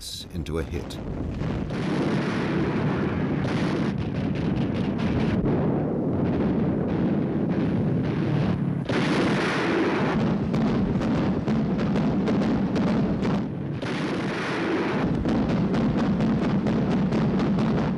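Anti-aircraft guns fire in rapid bursts.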